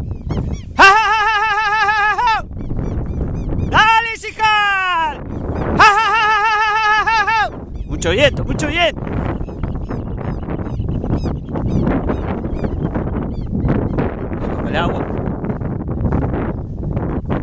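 Wind blows across an open field and buffets the microphone.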